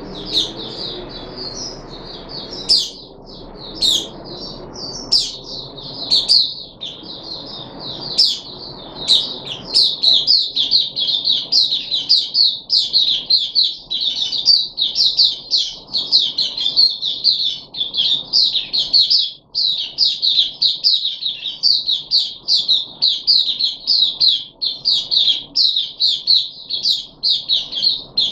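A small bird sings a fast, high, warbling song close by.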